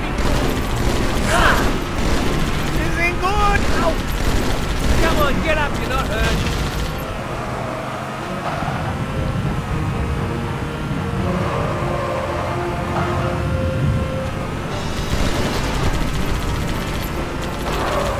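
A mounted machine gun fires rapid bursts.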